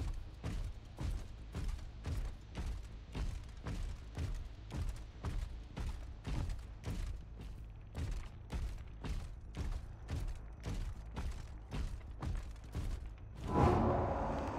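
Heavy footsteps thud at a steady walking pace.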